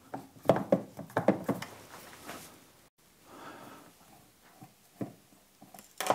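A screwdriver turns a screw in hard plastic.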